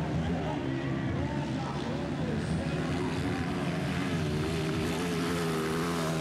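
A dirt bike engine revs loudly as it climbs and accelerates.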